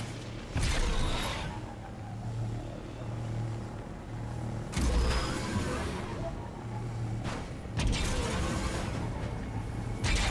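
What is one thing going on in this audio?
A hover bike engine hums steadily as it speeds along.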